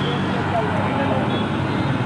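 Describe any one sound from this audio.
A motorbike engine drones past close by.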